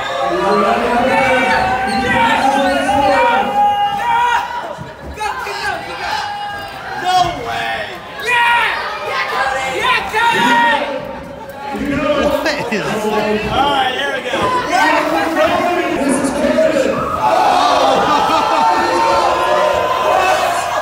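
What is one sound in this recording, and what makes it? A crowd of young men and women talks and cheers loudly in an echoing hall.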